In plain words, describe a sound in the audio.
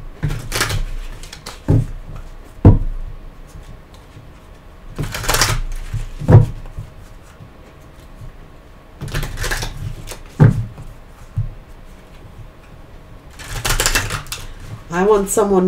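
Cards riffle and shuffle in a woman's hands.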